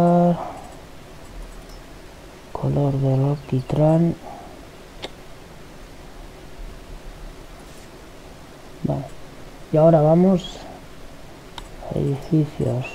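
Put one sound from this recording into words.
A man talks in short bursts into a close microphone.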